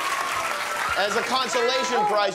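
A man speaks energetically to an audience.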